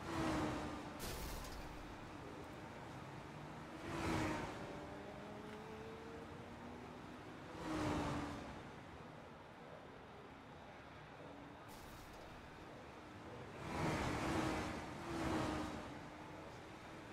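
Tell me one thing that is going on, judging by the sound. Race car engines roar past one after another, each rising and fading.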